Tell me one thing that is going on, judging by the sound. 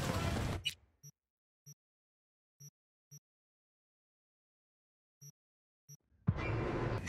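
Soft electronic menu blips sound at intervals.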